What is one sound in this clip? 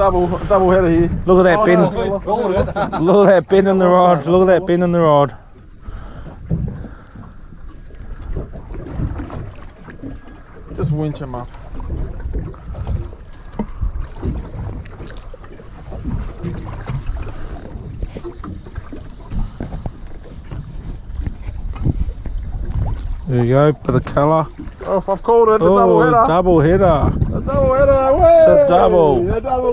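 Water laps gently against the side of a boat.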